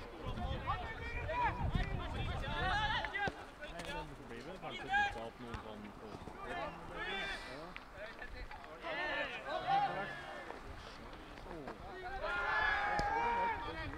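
Nearby spectators, mostly men, talk and call out.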